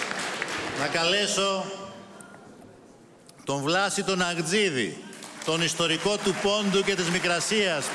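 A man speaks with animation through a microphone, his voice echoing over loudspeakers in a large hall.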